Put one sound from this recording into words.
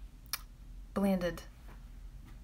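A woman speaks briefly, close by.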